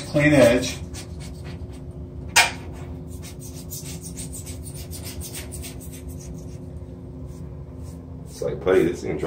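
A small tool scrapes grout with quick, rasping strokes.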